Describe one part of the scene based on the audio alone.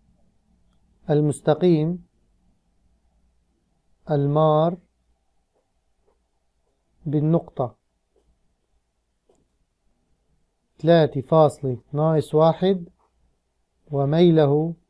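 A man speaks calmly and slowly into a close microphone, in short phrases with pauses.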